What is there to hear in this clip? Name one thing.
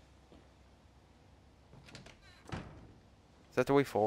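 A wooden door creaks open.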